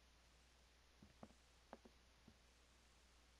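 Footsteps tread softly.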